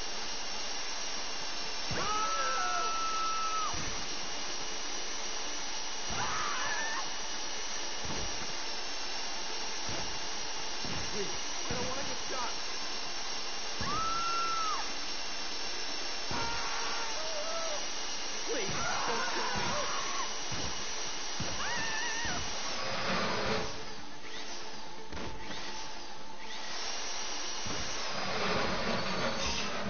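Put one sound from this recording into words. A power drill whirs steadily, grinding into metal.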